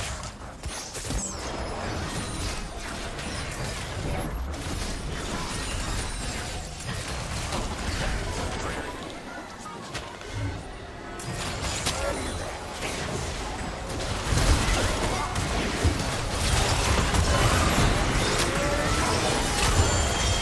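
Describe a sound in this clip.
Game spell effects whoosh and crackle in a fight, growing louder and busier toward the end.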